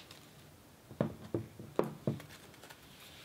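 Scissors clatter as they are set down on a table.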